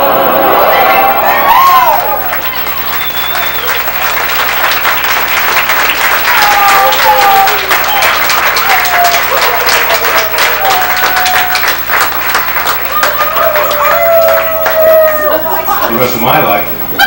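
A crowd cheers, whistles and applauds loudly in a large room.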